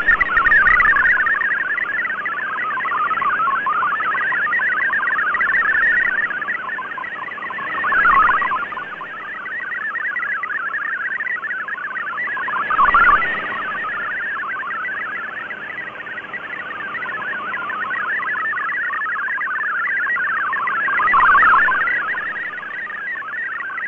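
A shortwave radio hisses and warbles with a steady stream of rapid data tones.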